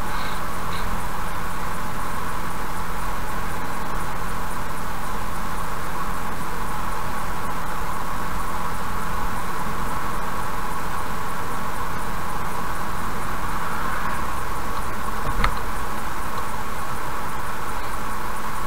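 A car's engine hums steadily.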